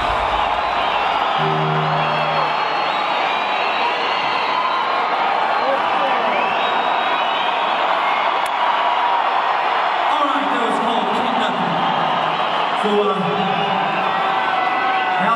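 A large crowd cheers and screams in a big echoing arena.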